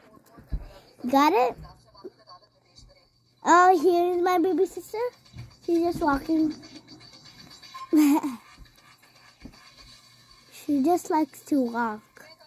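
A young boy talks with animation close to the microphone.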